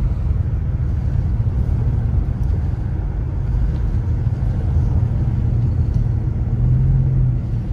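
A car engine hums steadily from inside the car.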